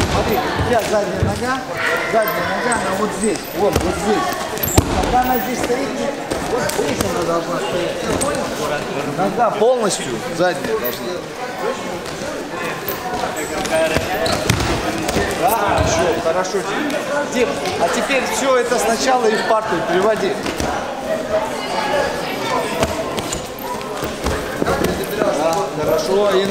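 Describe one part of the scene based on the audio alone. Young men chatter in the background of a large echoing hall.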